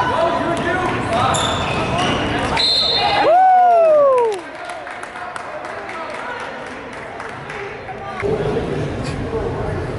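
A crowd cheers and shouts in an echoing gym.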